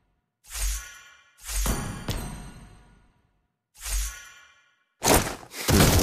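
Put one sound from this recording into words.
A game hero's attacks land with sharp whooshing blasts.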